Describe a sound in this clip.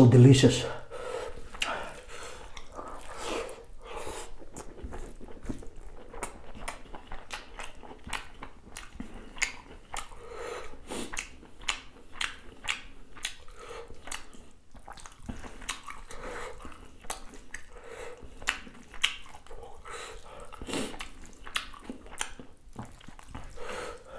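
Fingers squish and mix soft rice and food.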